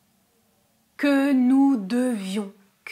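A young woman speaks clearly and with animation, close to a microphone.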